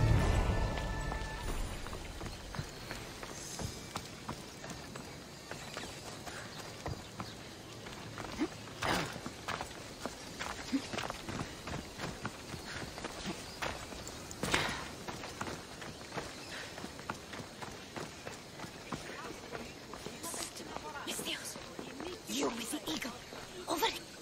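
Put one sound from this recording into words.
Footsteps run quickly over stone and gravel.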